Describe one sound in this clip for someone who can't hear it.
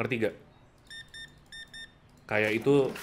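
A checkout scanner beeps several times.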